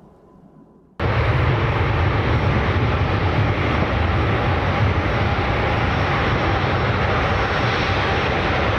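A jet airliner thunders loudly down a runway.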